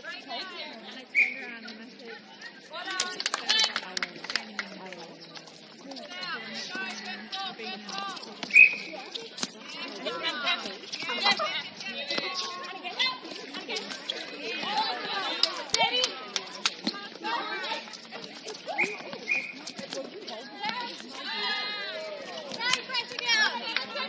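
Young women players call out to each other outdoors.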